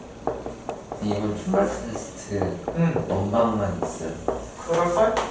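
A young man speaks calmly and clearly, close by.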